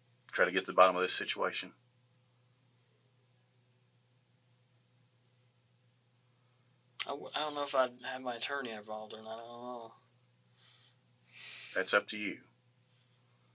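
A man speaks in a few short bursts, heard through a room microphone.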